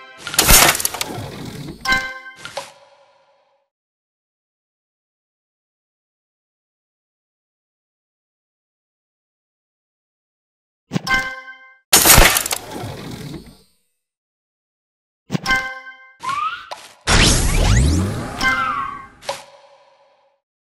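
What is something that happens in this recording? Bright game chimes and bursting effects sound in short bursts.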